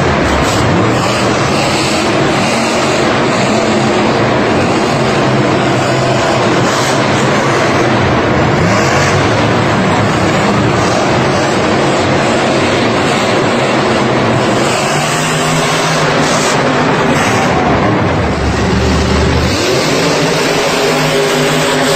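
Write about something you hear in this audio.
Monster truck engines roar and rev loudly in a large echoing arena.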